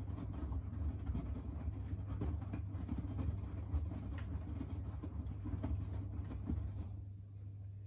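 A washing machine drum hums steadily as it turns.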